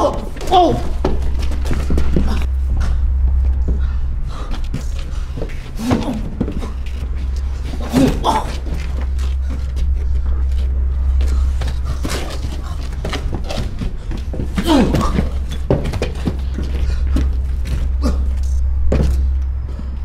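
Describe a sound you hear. Fists thud against a body in a fight.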